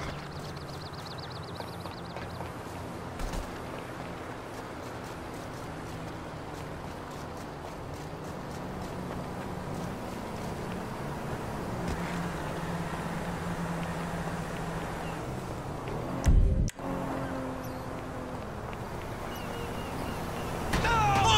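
Footsteps run over dirt and pavement.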